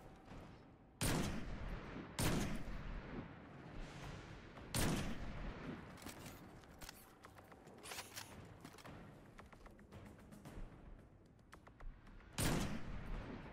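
Loud rifle shots ring out, each with a booming echo.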